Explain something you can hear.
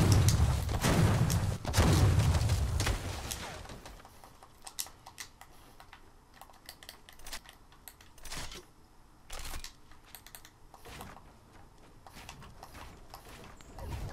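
Wooden building pieces clatter into place in quick succession.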